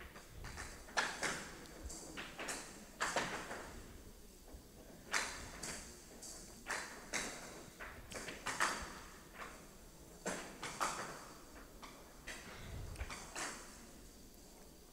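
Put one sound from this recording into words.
Wooden bats hit a ball with sharp knocks.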